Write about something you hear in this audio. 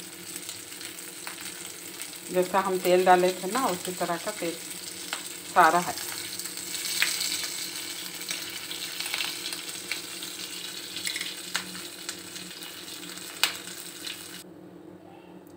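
Meat sizzles and crackles as it fries in hot oil.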